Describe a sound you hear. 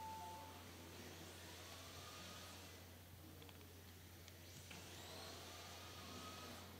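Small electric motors whine and rise in pitch as model cars race past.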